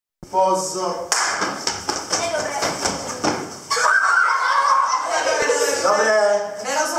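Children laugh excitedly.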